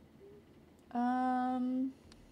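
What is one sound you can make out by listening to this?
A young woman hums a long steady note.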